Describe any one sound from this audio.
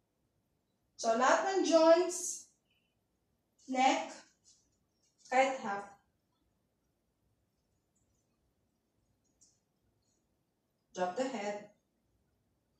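A young woman speaks calmly in short phrases, close by.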